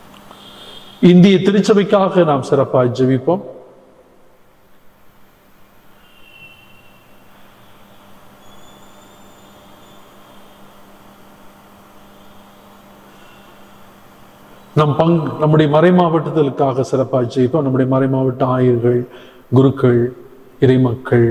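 An elderly man speaks with feeling into a microphone, pausing at length between phrases.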